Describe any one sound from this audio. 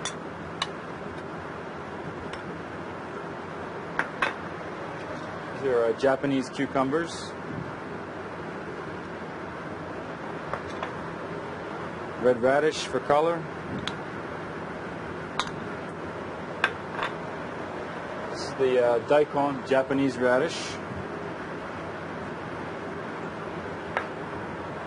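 A metal spoon clinks against a glass bowl and a dish.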